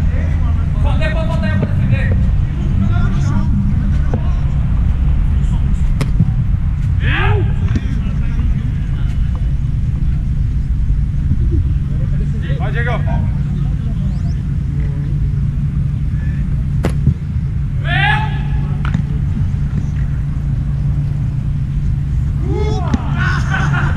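Players shout across an open field.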